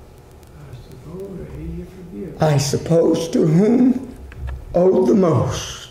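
A middle-aged man preaches with animation into a microphone, his voice echoing slightly in a room.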